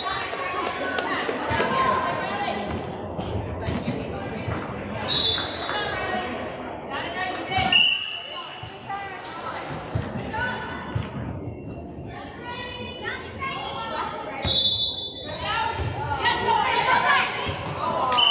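Young girls chatter and call out in a large echoing gym.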